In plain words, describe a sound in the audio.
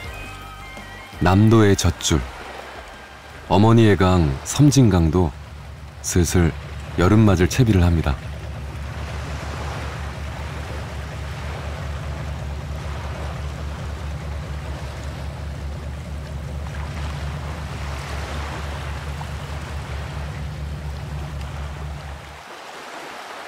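A small boat's motor chugs steadily and loudly.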